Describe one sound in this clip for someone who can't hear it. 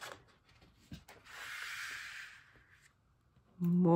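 Stiff paper rustles as a large page is turned.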